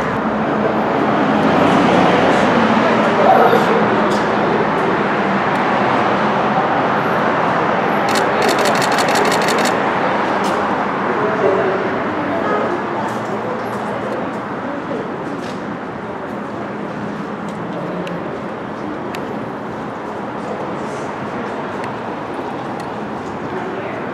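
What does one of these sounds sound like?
A woman talks quietly at a distance.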